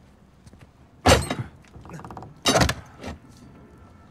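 A metal bar clanks against a wooden crate.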